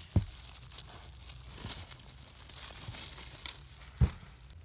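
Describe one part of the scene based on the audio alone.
A plastic bag crinkles and rustles close by.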